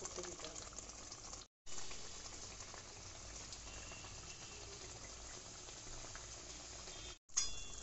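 Thick curry bubbles and simmers in a pan.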